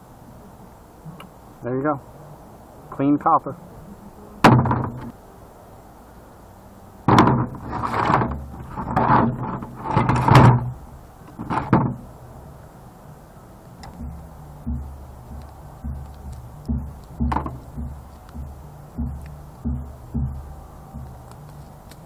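Small plastic and metal parts clatter and rattle.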